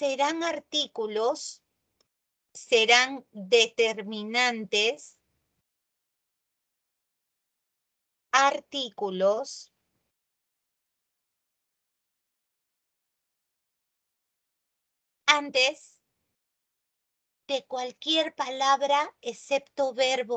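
A woman speaks calmly through an online call, in short bursts with pauses.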